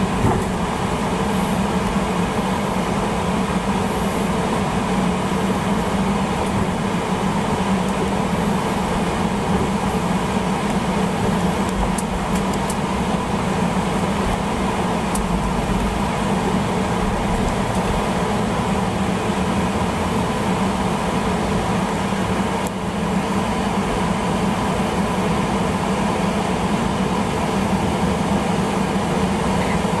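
A jet engine hums and whines steadily from inside an aircraft cabin as the plane taxis.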